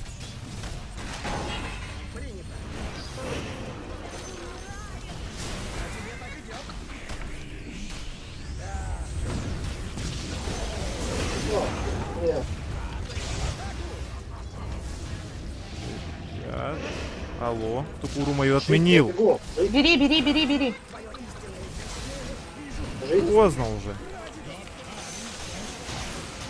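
Weapons clash and strike in a fantasy game battle.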